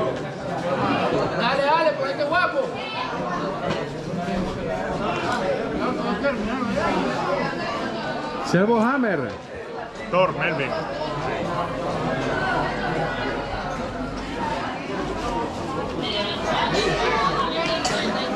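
Many children chatter and call out at a busy gathering.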